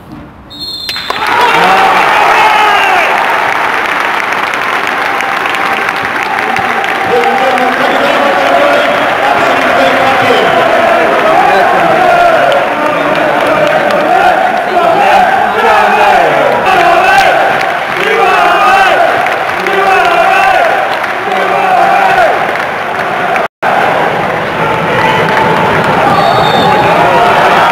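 A large stadium crowd breaks into loud applause after a hush.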